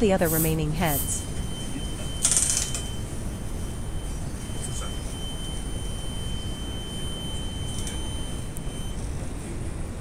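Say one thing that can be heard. An electronic alarm buzzer on a fire detection panel sounds a steady tone, then stops.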